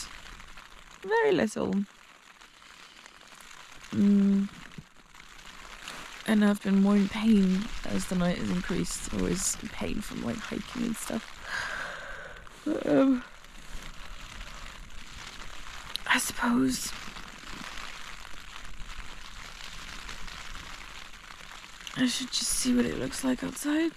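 A young woman speaks sleepily and close by, with groans and sighs.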